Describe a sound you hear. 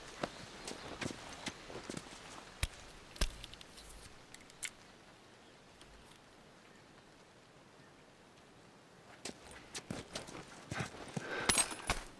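Footsteps shuffle over debris on a hard floor.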